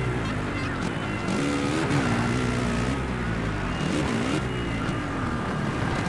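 Motorbike tyres scrape and skid on loose dirt.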